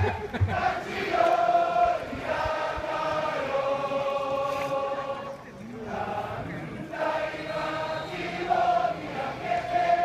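A large crowd of fans chants and sings loudly in unison outdoors.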